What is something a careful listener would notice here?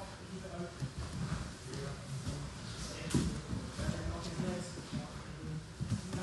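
Men grapple and shuffle on a padded mat.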